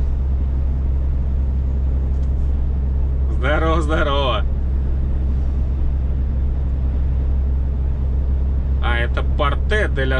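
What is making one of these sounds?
Tyres rumble steadily on the highway.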